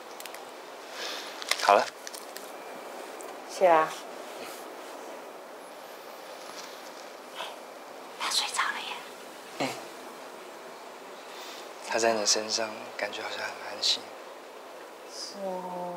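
A young man speaks calmly and softly nearby.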